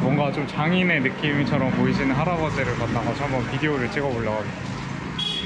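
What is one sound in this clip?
A young man talks cheerfully close to the microphone.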